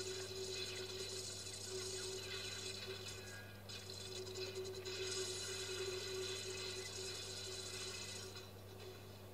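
Loud blasts roar and crackle.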